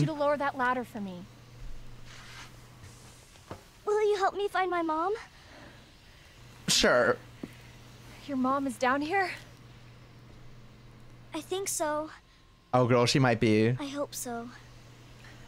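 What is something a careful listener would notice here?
A young woman speaks calmly and earnestly, close by.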